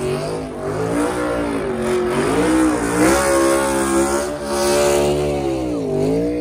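Tyres screech as a car spins on the track.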